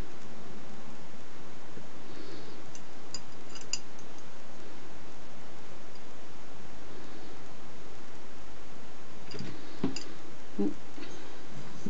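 Lace rustles softly as it is handled.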